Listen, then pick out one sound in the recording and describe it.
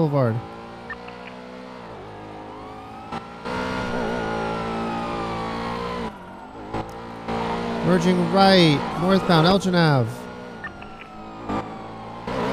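A car engine roars and revs up and down as the car speeds along.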